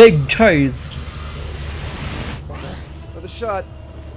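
A burst of energy whooshes and crackles.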